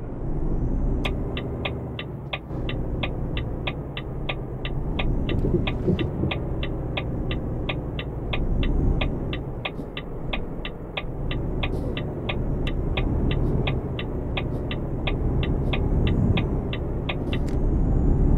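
A turn signal ticks quickly and evenly.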